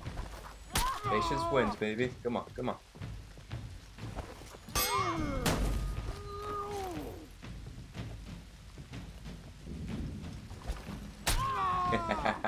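Steel weapons clash with sharp metallic rings.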